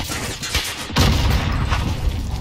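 A loud explosion booms close by.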